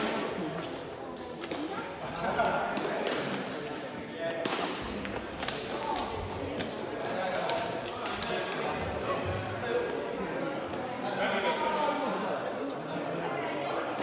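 Sneakers squeak on the hall floor.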